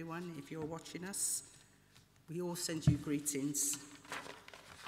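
A woman speaks with feeling into a microphone in a large echoing room.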